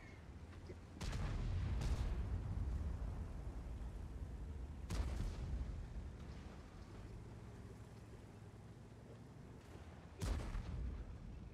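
Tank cannons fire with loud booming blasts.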